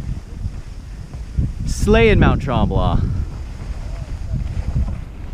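Skis scrape and hiss over the snow.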